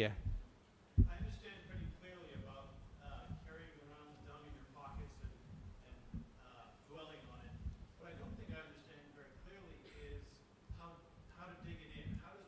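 A man speaks softly and calmly through a microphone.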